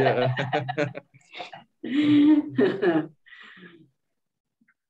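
A middle-aged man laughs softly.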